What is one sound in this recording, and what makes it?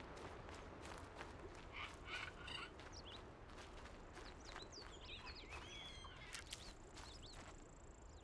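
Leaves and foliage rustle as someone pushes through plants.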